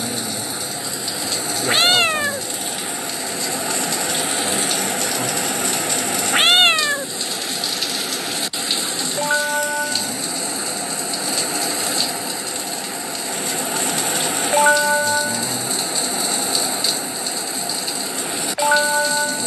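Water sprays steadily from a shower head.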